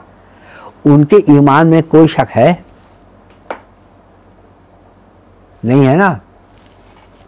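An elderly man speaks calmly and with emphasis, close to a microphone, pausing between phrases.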